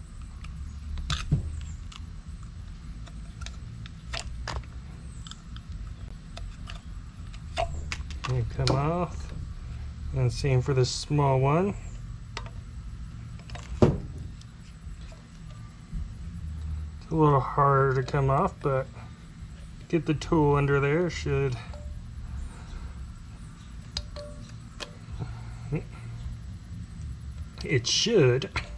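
Small metal tools click and tap against a metal part.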